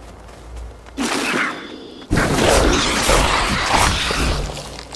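A magical whoosh bursts out loudly.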